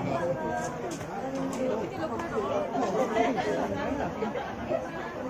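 A crowd of men and women chatters all around nearby.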